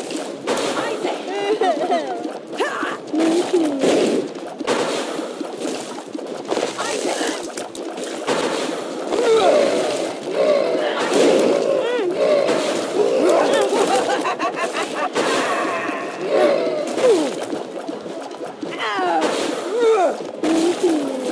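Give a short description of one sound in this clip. Wet splats pop again and again as small shots strike and burst.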